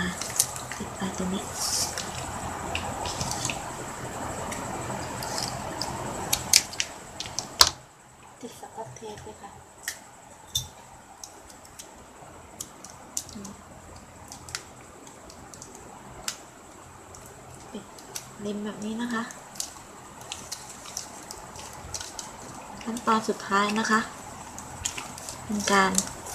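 Plastic ribbon clicks and snaps as hands tuck it into place.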